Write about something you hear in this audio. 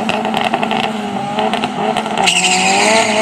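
A race car's engine idles and revs loudly.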